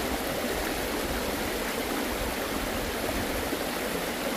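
Water splashes and drips as a net is lifted from a stream.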